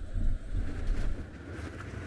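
A vehicle engine hums as it drives along.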